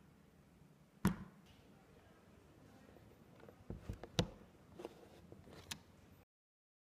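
A laptop lid knocks lightly as it is handled.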